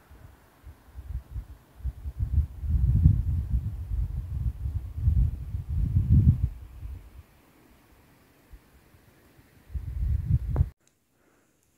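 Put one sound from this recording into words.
Wind gusts buffet the microphone outdoors with a low rumble.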